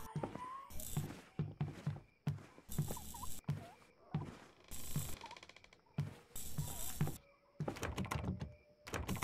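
Footsteps thud and creak on wooden stairs and floorboards.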